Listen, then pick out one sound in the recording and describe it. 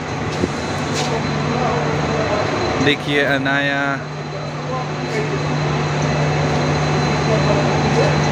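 A train hums steadily.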